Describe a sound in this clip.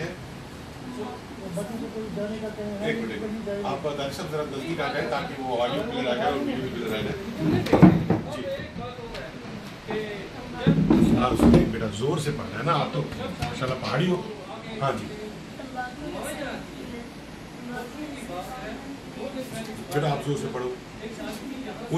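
A man speaks calmly and closely, explaining.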